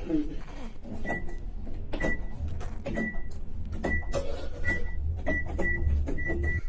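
Elevator buttons beep again and again in short high tones.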